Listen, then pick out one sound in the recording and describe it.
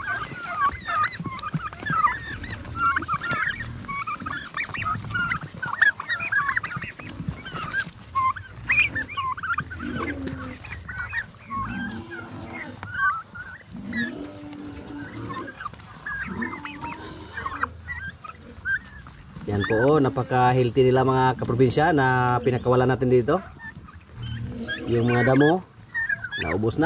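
Turkeys chirp and peep steadily close by.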